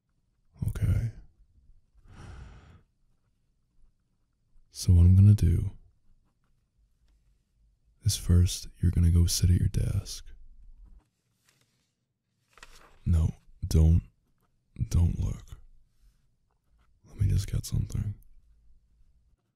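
A young man speaks softly and teasingly in a low voice, close to a microphone.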